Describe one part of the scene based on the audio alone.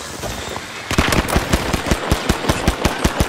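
A pistol fires in quick repeated shots.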